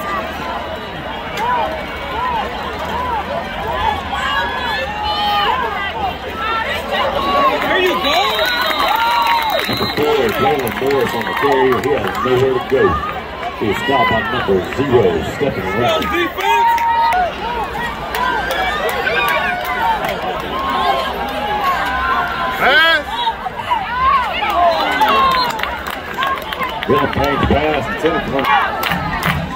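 A large crowd cheers and shouts in the open air.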